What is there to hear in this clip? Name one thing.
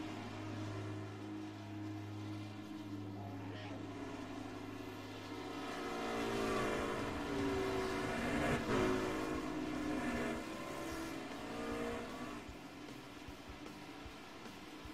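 Racing engines roar steadily at high revs as trucks race past.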